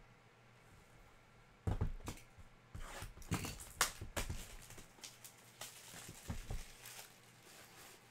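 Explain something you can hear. Cards and plastic sleeves rustle and click as hands handle them.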